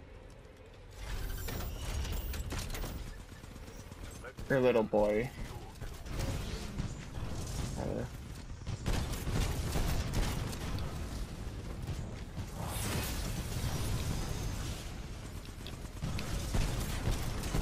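A heavy gun fires in rapid bursts.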